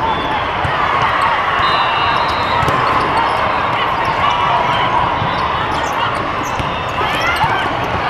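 A volleyball is struck with a hard slap.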